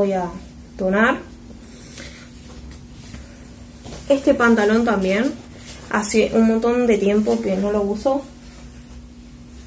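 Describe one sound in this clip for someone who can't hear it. Fabric rustles as clothes are shaken out.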